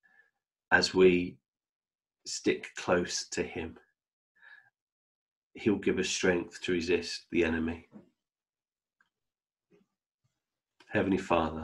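A man talks calmly and close to a microphone, in short bursts with pauses.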